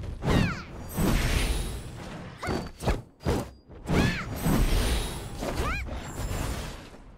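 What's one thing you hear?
Blades clash and slash in heavy impacts.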